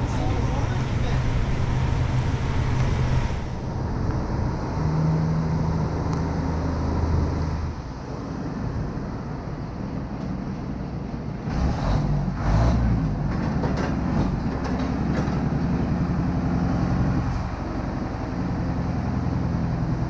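A heavy diesel engine idles and rumbles nearby.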